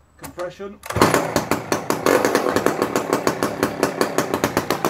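A chainsaw starts up and idles loudly with a fast rattling sputter.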